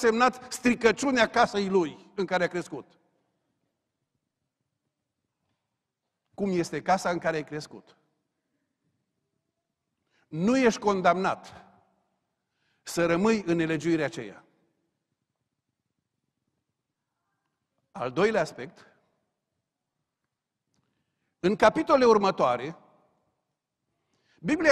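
A middle-aged man preaches through a microphone in deliberate phrases with long pauses.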